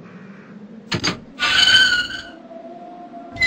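A metal gate rattles open.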